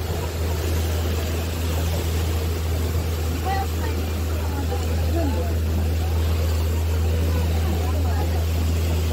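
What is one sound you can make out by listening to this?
Water churns and splashes in the boat's wake.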